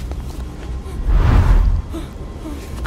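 A man falls heavily onto a hard floor.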